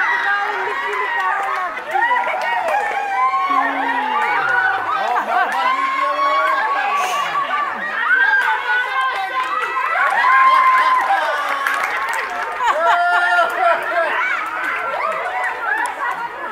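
Many children shout and squeal excitedly outdoors.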